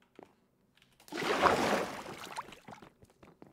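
Water splashes out of a bucket.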